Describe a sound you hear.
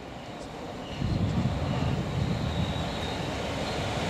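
A diesel locomotive approaches with a deep engine rumble.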